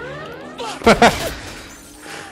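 A loud explosion bursts with crackling fireworks.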